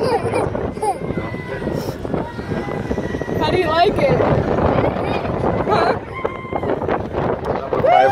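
Wind rushes past a microphone on a moving amusement ride.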